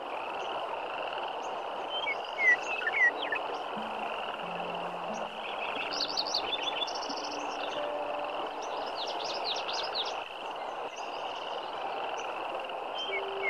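A shallow river rushes and burbles steadily over rocks.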